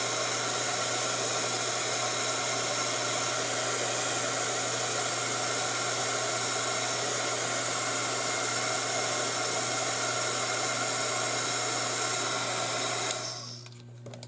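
A heat gun blows with a loud, steady whoosh, then switches off.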